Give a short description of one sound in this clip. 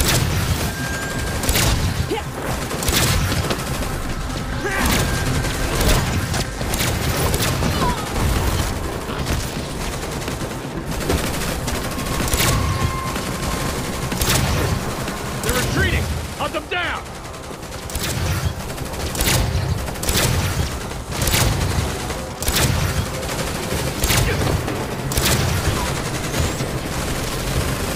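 Gunshots crack repeatedly in a game.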